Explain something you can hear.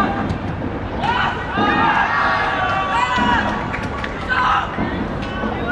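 Young players cheer after a goal.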